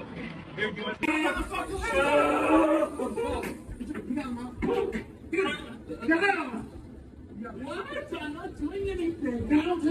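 Men shout loudly nearby.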